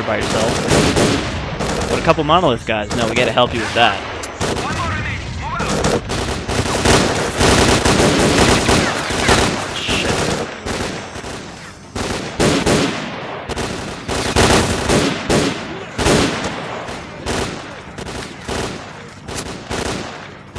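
Rifle shots crack and echo repeatedly.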